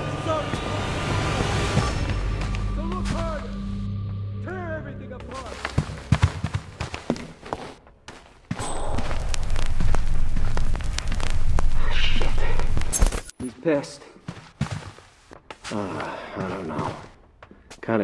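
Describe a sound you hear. Soft footsteps shuffle across a floor.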